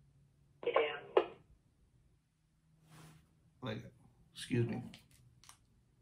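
A middle-aged man speaks calmly and close by, in short bursts.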